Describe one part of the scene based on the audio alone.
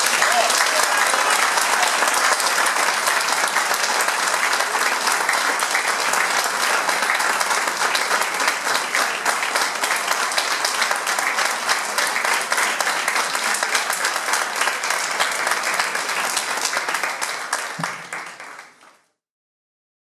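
A crowd applauds steadily with loud clapping, then fades out.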